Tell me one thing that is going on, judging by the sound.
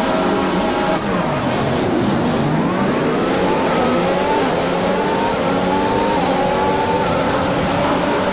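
A racing car engine roars and whines as it speeds up through the gears.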